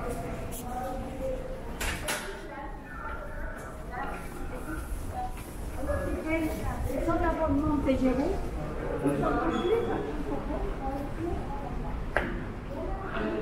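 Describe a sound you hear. Footsteps echo on a hard floor in an echoing underground passage.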